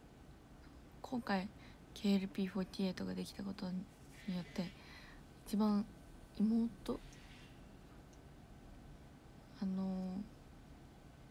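A young woman speaks softly and casually, close by.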